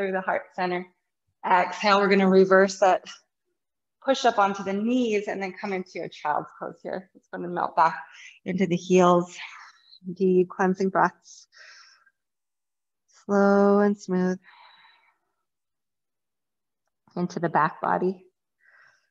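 A woman speaks calmly and slowly, giving gentle instructions close to a microphone.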